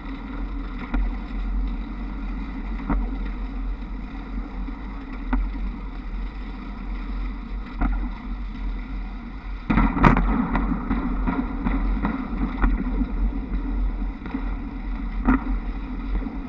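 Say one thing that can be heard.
Trolley poles click and clatter along overhead wires now and then.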